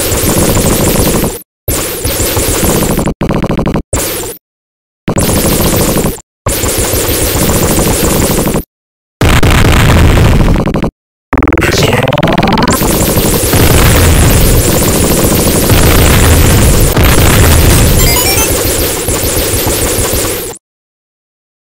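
Rapid electronic gunfire rattles in a video game.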